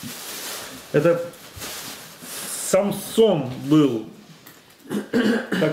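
A middle-aged man speaks close by in a calm, thoughtful voice.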